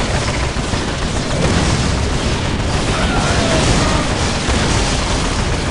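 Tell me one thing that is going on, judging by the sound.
Guns fire rapidly in a battle.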